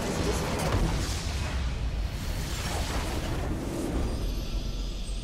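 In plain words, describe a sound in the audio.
Game explosions and spell effects crash and boom loudly.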